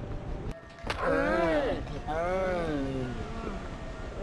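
A man cries out and groans loudly in pain.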